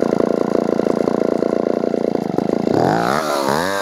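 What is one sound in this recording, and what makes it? A chainsaw engine idles with a rapid, steady putter.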